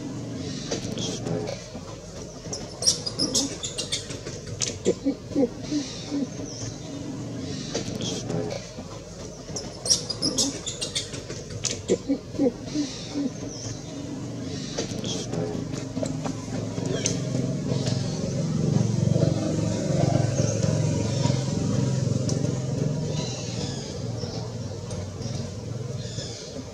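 Leaves rustle as monkeys climb through a tree.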